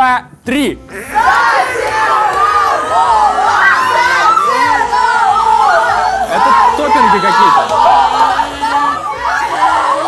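Young women laugh and shriek.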